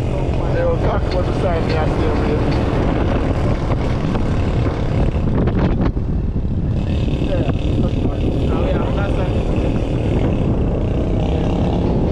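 A car engine rumbles as a car drives along a rough road.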